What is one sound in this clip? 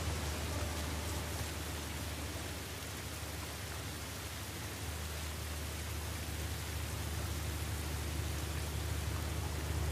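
Tall grass rustles as someone pushes through it.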